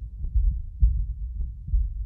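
Shoes step slowly on a hard floor.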